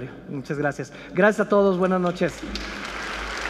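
A man speaks loudly to an audience in a large echoing hall.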